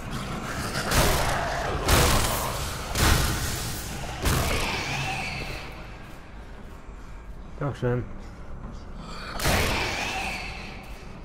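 Heavy blows strike flesh with wet, squelching thuds.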